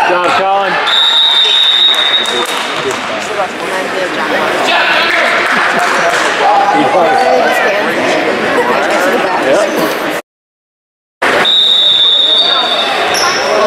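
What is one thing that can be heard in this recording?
A whistle blows shrilly.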